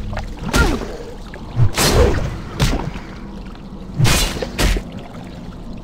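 Sword blows land with sharp, heavy thuds.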